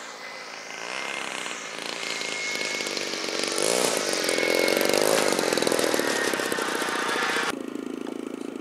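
A model plane's engine hums and whines as it flies low and lands.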